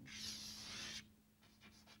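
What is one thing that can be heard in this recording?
Chalk scrapes on a blackboard.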